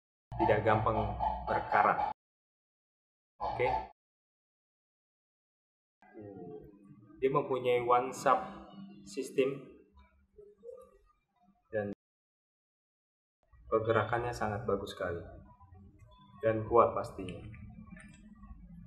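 A man talks close by, calmly explaining.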